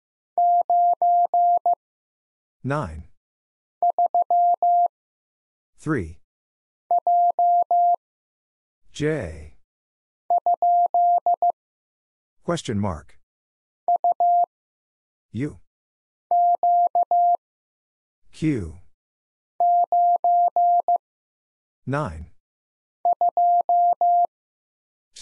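A telegraph key taps out Morse code in short, steady beeps.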